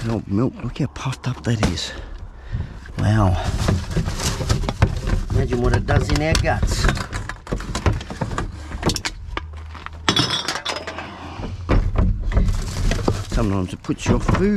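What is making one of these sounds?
Plastic rubbish rustles and crinkles as hands dig through a bin.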